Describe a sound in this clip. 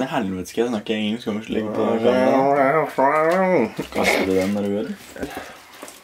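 A young man talks and laughs close by with animation.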